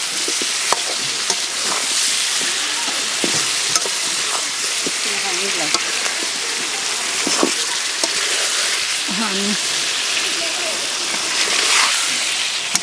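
A metal spatula scrapes and knocks against a metal pan.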